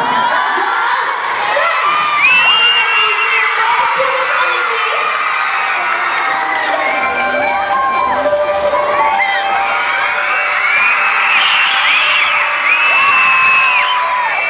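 A large crowd of young fans screams and cheers loudly.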